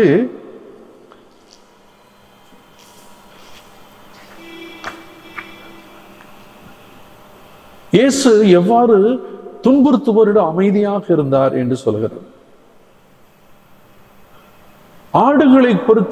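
An elderly man chants in a sung voice through a microphone, with long pauses.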